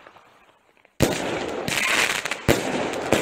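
Firework sparks crackle and hiss loudly.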